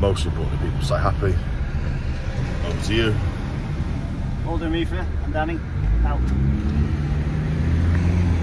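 A vehicle engine hums steadily inside a cab.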